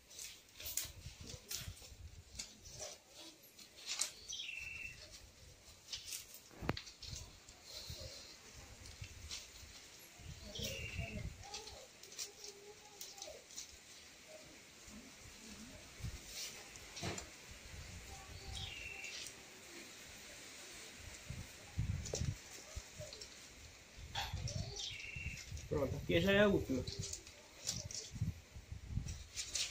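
Stiff palm leaves rustle and scrape as hands weave them.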